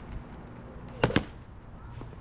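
A board thumps onto the pavement.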